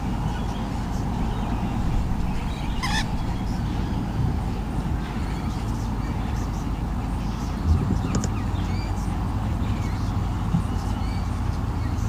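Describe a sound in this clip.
Wind rumbles steadily against a microphone outdoors.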